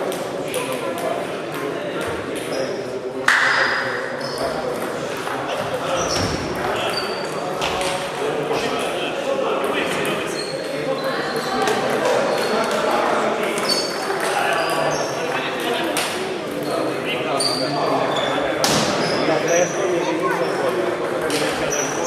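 Table tennis balls click on paddles and tables in a large echoing hall.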